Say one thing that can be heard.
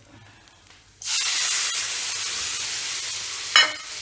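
Food sizzles loudly in a hot pan.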